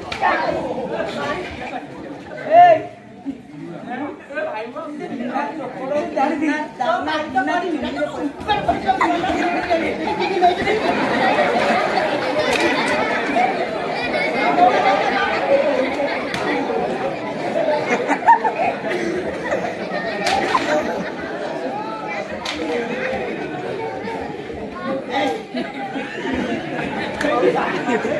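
A large crowd chatters and calls out loudly.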